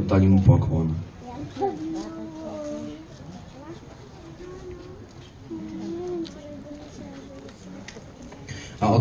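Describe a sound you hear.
A children's choir sings softly in the background.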